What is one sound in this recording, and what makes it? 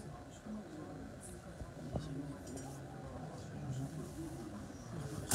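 Many men and women chatter at once in a crowded room.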